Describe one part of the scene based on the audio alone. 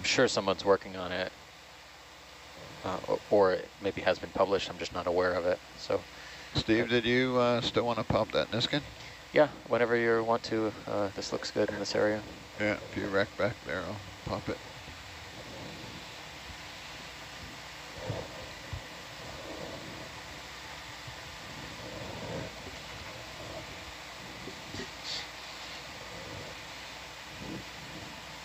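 A submersible's motors hum steadily underwater.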